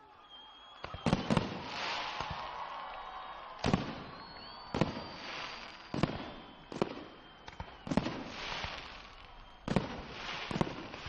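Fireworks explode with loud booming bangs outdoors.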